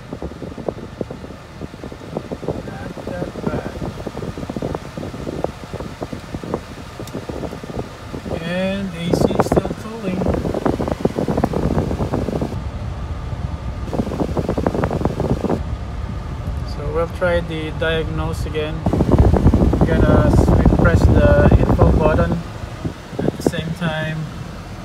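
A car engine idles with a steady rattling knock.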